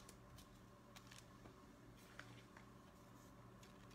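A card slides across a wooden table.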